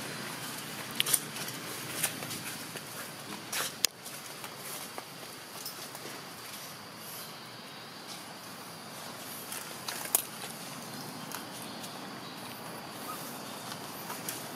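Dry leaves rustle and crackle as a young monkey moves over the ground.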